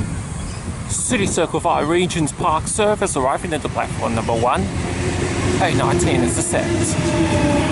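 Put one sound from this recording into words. A train horn sounds several times.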